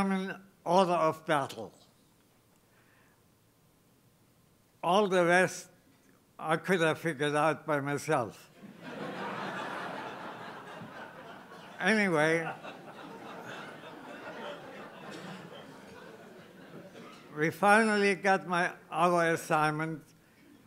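An elderly man speaks slowly into a microphone, with long pauses, amplified in a large hall.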